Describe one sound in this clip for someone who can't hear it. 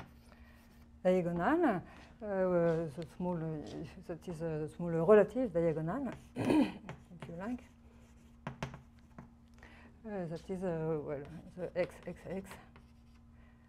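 A woman speaks calmly, lecturing.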